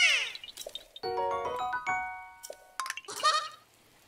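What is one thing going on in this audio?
A bright chiming jingle plays.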